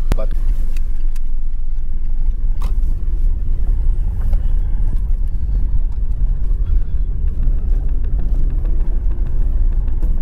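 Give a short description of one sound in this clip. A car engine rumbles low and steady from inside the cabin.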